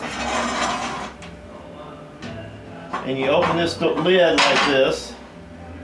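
A metal lid scrapes and clanks as it is lifted off a stove.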